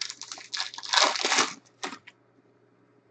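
Foil wrappers crinkle and rustle as a pack is torn open.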